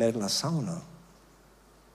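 An older man speaks with emphasis into a microphone.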